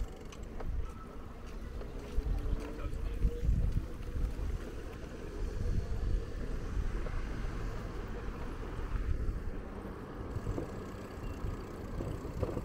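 Bicycle tyres roll along a paved path.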